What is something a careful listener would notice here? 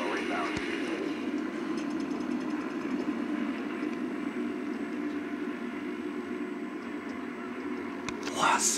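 Victory music plays from a television speaker.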